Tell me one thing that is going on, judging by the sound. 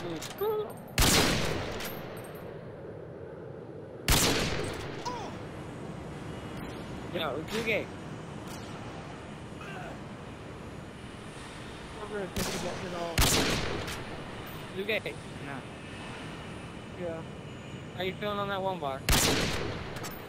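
A bolt-action sniper rifle fires with a loud crack.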